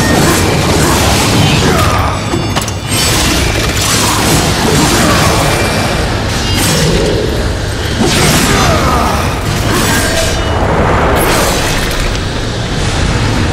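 Blades slash and strike creatures in a fast, noisy fight.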